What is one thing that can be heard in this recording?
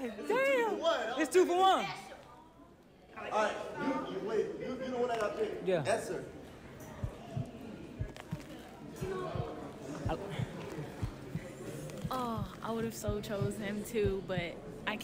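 A young man shouts and laughs excitedly close by.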